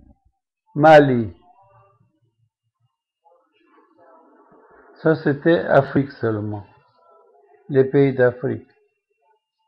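An elderly man speaks in short bursts close to a microphone.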